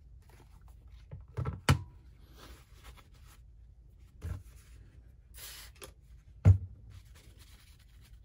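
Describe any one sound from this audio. A paper towel crinkles and rustles in hands.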